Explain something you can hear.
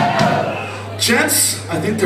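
An audience cheers and whoops.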